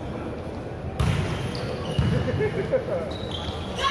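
A volleyball is struck with loud smacks.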